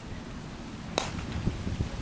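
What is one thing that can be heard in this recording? A cricket bat sharply cracks against a ball.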